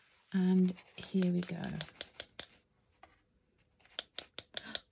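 A stiff brush taps lightly on paper in quick dabs.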